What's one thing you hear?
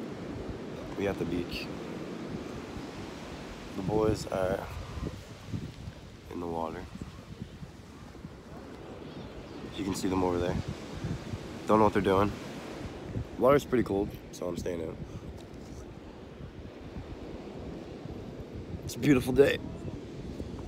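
A young man talks casually close to a phone microphone.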